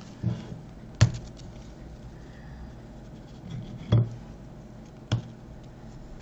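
A crisp biscuit snaps and crunches.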